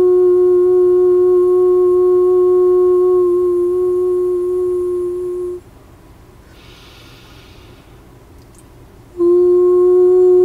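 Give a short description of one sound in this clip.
A woman hums a long, steady low note close by.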